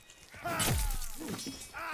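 A sword clangs against a wooden shield.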